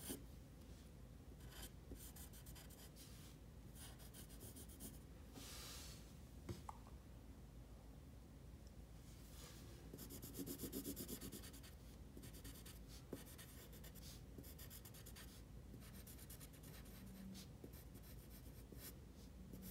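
A pencil scratches softly on paper in quick strokes.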